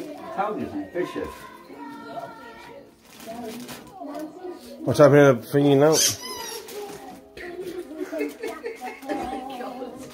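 Wrapping paper rustles and crinkles.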